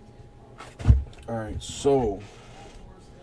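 Cardboard boxes are set down on a table with soft knocks.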